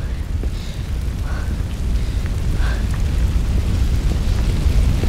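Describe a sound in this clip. A large fire roars and crackles nearby.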